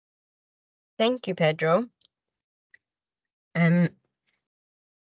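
A woman speaks over an online call.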